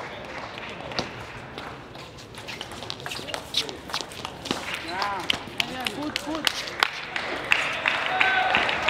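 A table tennis ball is knocked back and forth by paddles in a fast rally, bouncing on the table.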